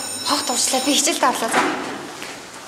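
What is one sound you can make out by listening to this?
A young woman speaks cheerfully nearby.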